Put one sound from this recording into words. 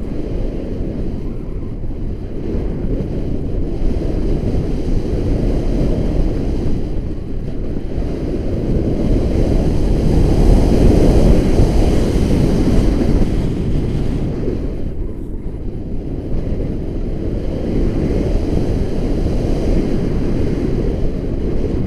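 Strong wind rushes and buffets loudly against a microphone, outdoors high in the air.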